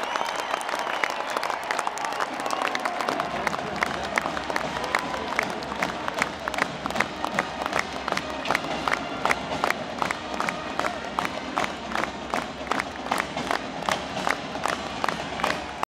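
A crowd claps in a quick, steady rhythm.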